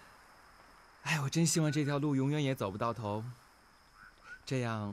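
A man speaks warmly and calmly, close by.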